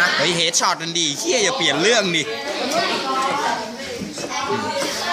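Young boys talk with animation close by.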